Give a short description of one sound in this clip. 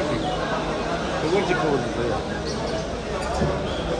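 Men talk in a busy crowd nearby.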